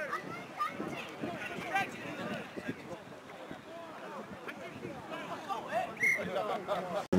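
A crowd of young men and women shouts and cheers outdoors.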